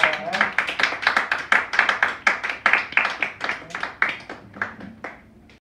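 Several people clap their hands briskly, then the clapping fades out.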